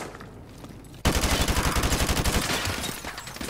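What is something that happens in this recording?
A gun fires a rapid burst, echoing in a large hall.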